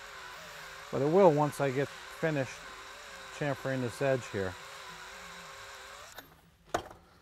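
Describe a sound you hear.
A cordless drill whirs in short bursts, its pitch rising and falling.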